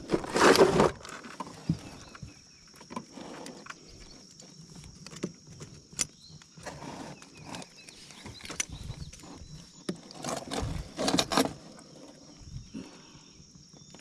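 Metal pliers click and snip.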